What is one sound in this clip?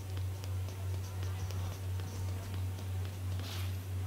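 Quick footsteps patter on pavement.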